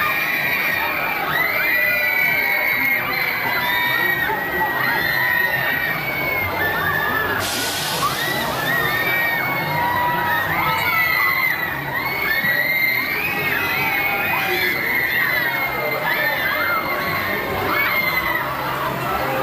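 A fairground ride whooshes and rumbles as it swings.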